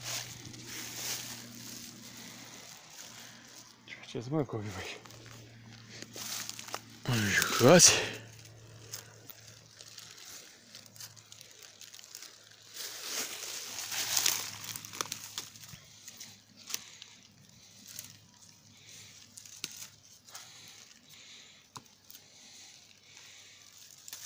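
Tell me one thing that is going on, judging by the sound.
Dry grass rustles and crackles close by.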